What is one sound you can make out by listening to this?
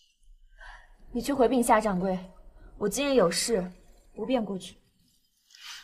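A second young woman answers calmly up close.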